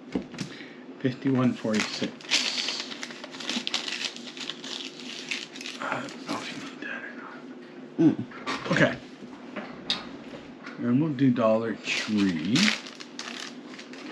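A middle-aged man talks calmly and close by, facing the listener.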